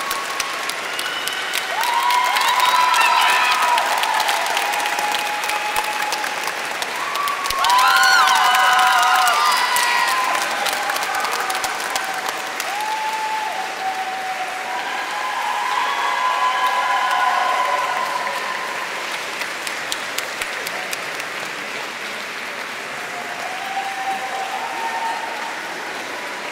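Audience members whoop and cheer.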